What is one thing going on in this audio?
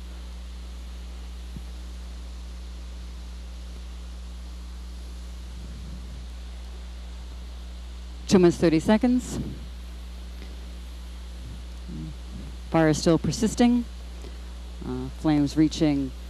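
A fire burns with a steady roar.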